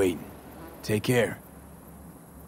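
A young woman speaks a few calm words close by.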